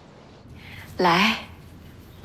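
A woman says a short word up close.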